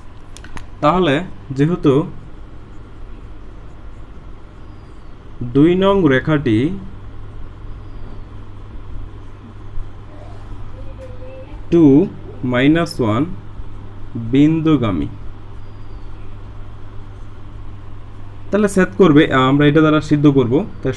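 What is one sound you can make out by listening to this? A young man speaks calmly and clearly, as if explaining, in short bursts with pauses.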